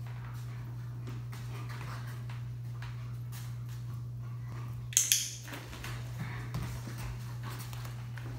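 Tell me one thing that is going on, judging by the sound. A dog's paws pad softly across a floor mat.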